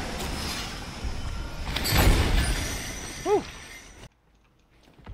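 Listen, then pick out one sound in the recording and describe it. Fiery video game spell effects blast and whoosh.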